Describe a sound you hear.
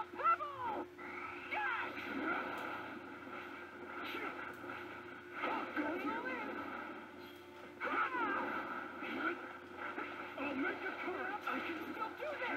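Crackling energy blasts and heavy hits from a fighting game play through a speaker.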